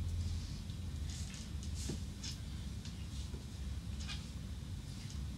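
Clothing rustles softly as a woman moves her arms.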